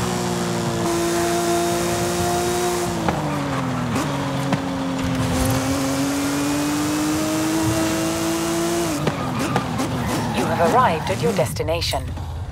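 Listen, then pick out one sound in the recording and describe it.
A sports car engine roars at high revs, dropping and climbing in pitch.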